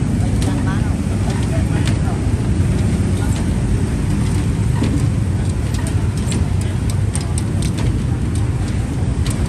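A busy crowd murmurs outdoors.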